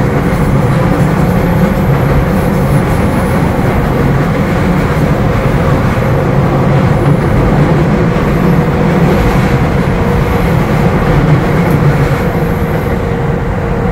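Train wheels squeal thinly on a curve.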